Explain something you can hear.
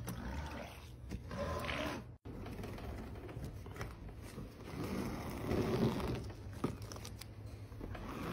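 A metal scraper scrapes across a soft block with a gritty rasp.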